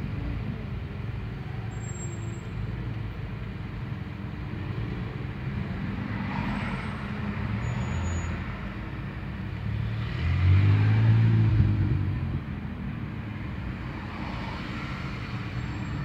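Street traffic passes outside.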